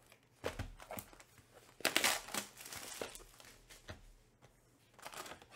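A cardboard box knocks and slides on a table.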